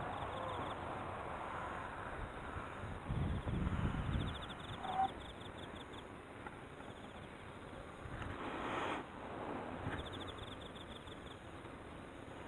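A fishing reel ticks quickly as its line winds in.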